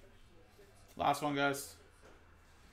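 A man speaks briefly.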